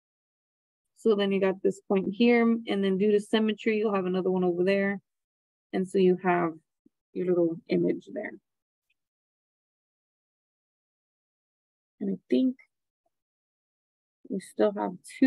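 A young woman explains calmly through a microphone, in short phrases with pauses.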